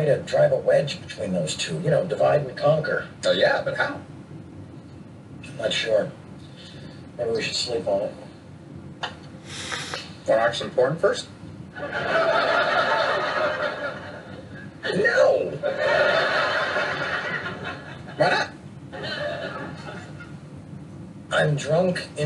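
A man speaks with animation, heard through a television speaker.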